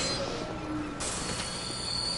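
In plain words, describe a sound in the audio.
A magical burst shimmers and whooshes.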